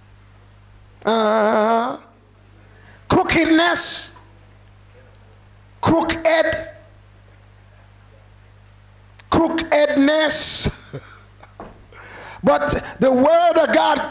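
A man preaches loudly and with animation into a microphone, in bursts with pauses.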